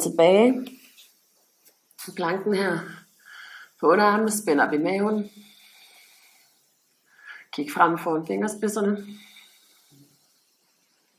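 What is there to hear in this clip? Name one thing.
A woman speaks calmly and clearly, giving instructions.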